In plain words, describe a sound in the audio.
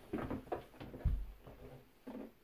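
A toilet lid drops shut with a thud.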